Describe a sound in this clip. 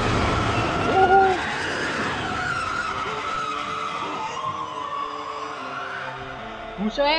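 A creature lets out a long, shrill scream.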